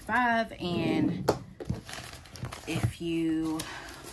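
Paper pages rustle as a notebook is flipped.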